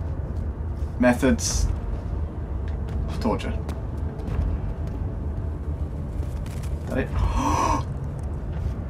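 A young man talks into a close microphone, in short bursts.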